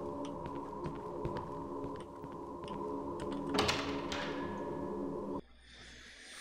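Keyboard keys click and tap.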